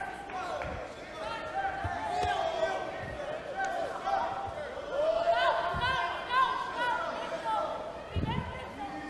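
Two grapplers in gis scuffle and shift their weight on a mat.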